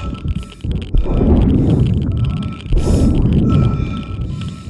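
Steam hisses and bursts out loudly.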